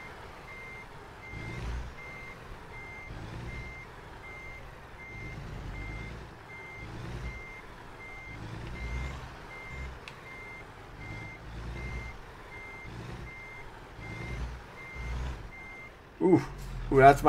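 A truck's reversing alarm beeps in a steady rhythm.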